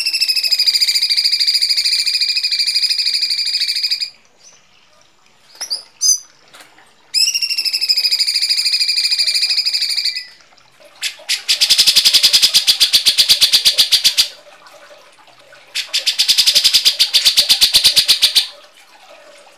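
A bird repeats a loud, harsh, buzzing call in long bursts.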